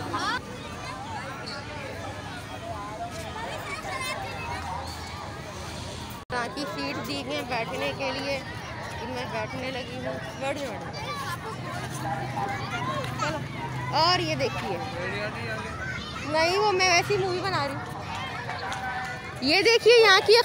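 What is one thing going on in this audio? A crowd of people talk and call out nearby.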